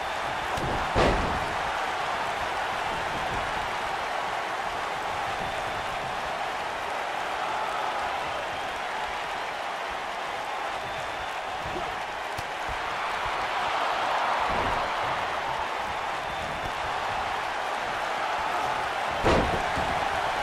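A body slams onto a wrestling ring mat.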